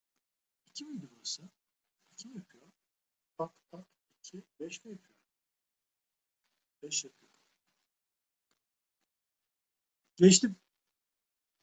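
A man speaks calmly in short phrases through a microphone on an online call.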